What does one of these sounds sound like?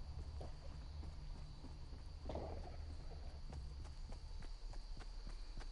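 Footsteps thud quickly and evenly on wooden boards.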